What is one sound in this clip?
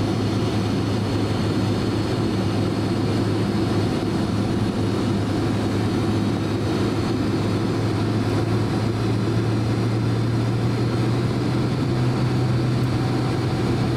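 Aircraft wheels rumble over the taxiway.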